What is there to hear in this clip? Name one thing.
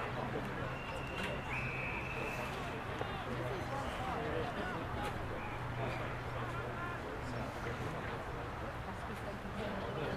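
Men shout and call out across an open field in the distance.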